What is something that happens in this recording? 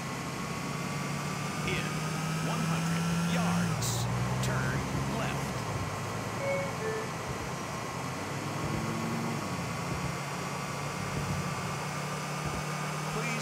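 A car engine hums steadily as the car drives along a road.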